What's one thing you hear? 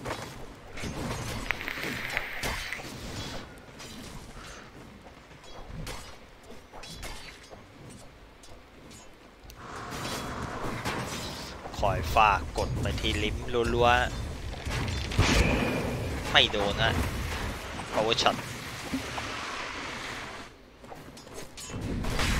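Magic spells crackle and burst in a fantasy battle.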